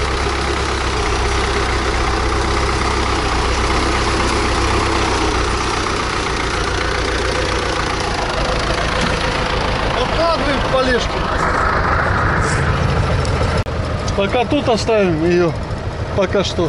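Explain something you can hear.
A tractor engine idles with a steady, loud rumble.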